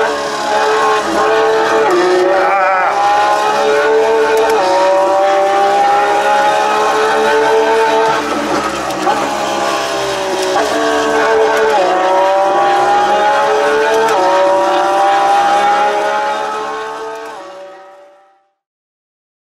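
A simulated racing car engine revs through loudspeakers, rising in pitch and dropping with each gear change.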